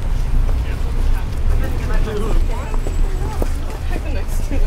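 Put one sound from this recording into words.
Passers-by talk faintly on a street outdoors.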